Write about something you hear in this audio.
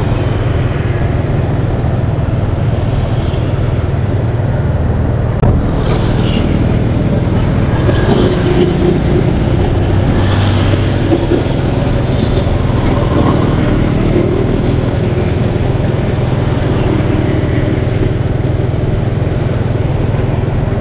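Other motorbikes buzz past nearby.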